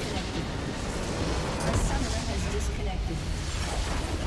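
A huge crystal structure explodes with a deep rumble.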